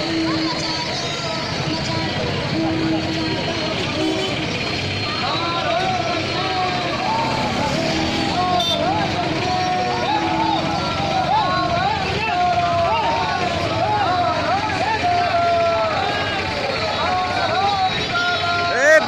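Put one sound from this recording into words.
A large crowd of men chants slogans loudly outdoors.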